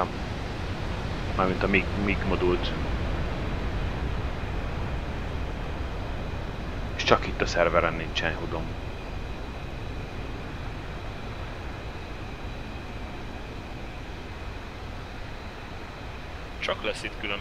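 A jet engine idles with a low, steady rumble.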